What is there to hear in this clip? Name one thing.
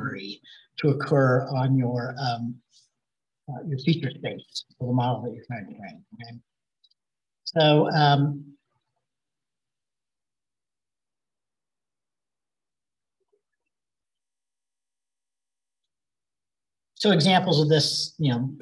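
A man speaks calmly into a close microphone, explaining in pauses.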